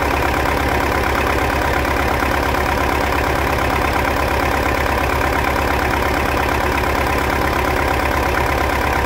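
A diesel tractor engine idles loudly with a steady, rapid chugging.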